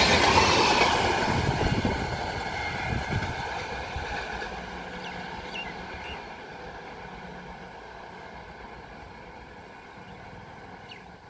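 A train fades into the distance down the track.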